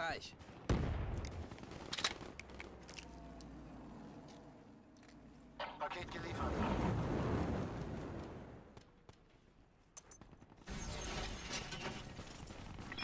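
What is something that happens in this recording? Gunfire and explosions from a video game crackle and boom in bursts.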